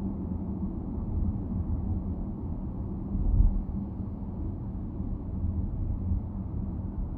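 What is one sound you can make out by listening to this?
Traffic rumbles past on a busy road.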